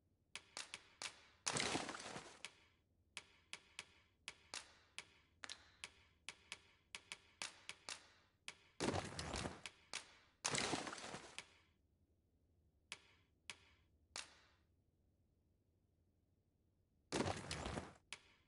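Short electronic menu clicks sound in quick bursts, with a few louder swooshing chimes.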